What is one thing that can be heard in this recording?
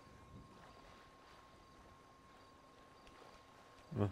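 Water sloshes as a man wades through a lake.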